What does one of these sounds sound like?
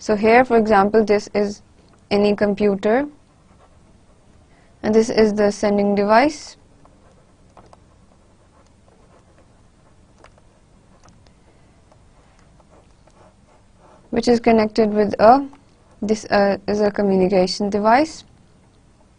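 A woman speaks calmly into a close microphone, in short bursts with pauses.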